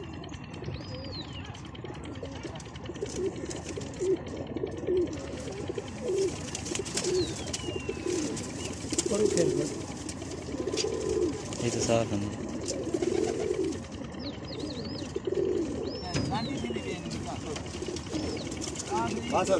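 Pigeons coo in low, rolling calls close by.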